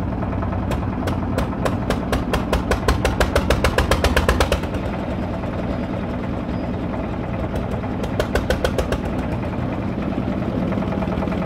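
An engine runs with a loud steady rumble.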